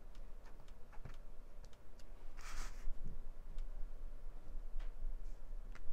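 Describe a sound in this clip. A stamp taps lightly on an ink pad.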